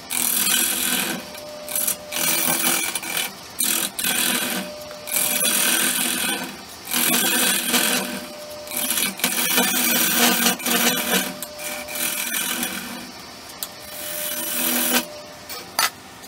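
A gouge scrapes and shaves a spinning block on a lathe in loud bursts.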